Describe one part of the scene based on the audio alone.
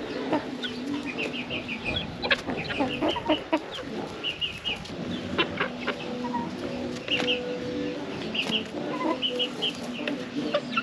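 Chicks chirp in short, quick bursts.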